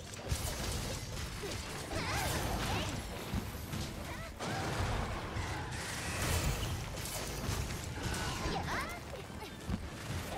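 A huge monster roars and stomps heavily.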